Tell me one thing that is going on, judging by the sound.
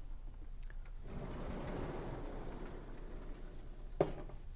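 A sliding blackboard rumbles as it is pushed up.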